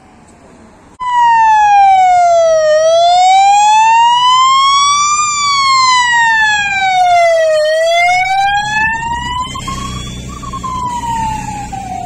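A police siren wails loudly, rising and falling.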